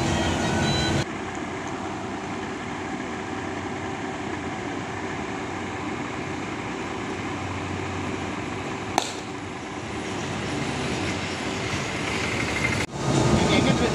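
A bus engine idles nearby.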